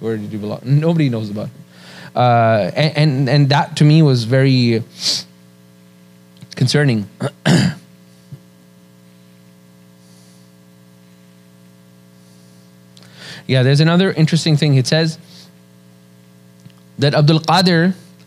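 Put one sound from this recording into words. A middle-aged man speaks calmly into a microphone, pausing often.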